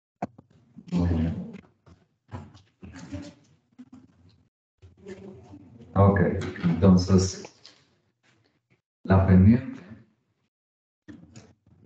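A middle-aged man lectures calmly through a microphone, in short bursts with pauses.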